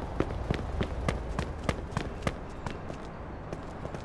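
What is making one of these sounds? Footsteps run quickly on cobblestones.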